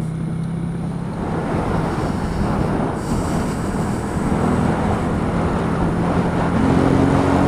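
Wind rushes past, growing louder as speed picks up.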